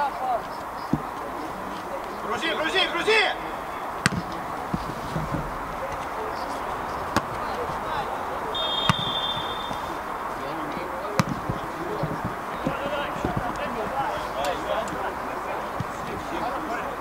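Men shout to each other across a pitch outdoors.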